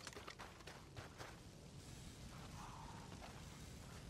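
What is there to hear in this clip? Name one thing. A brush fire crackles.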